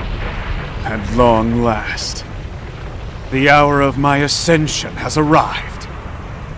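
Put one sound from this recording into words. A man speaks slowly and menacingly.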